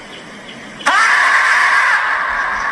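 A marmot lets out a loud, shrill scream outdoors.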